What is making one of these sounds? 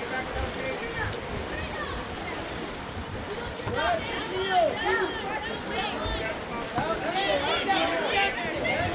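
Water polo players splash in a pool.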